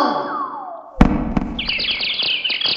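A cartoon cat thuds onto the floor.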